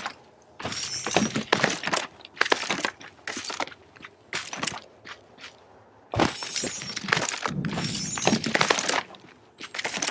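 Magical sparkles shimmer and chime.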